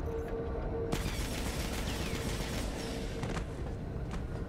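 Steam hisses from a vent.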